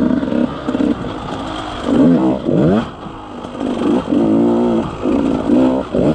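A dirt bike engine revs up and down loudly.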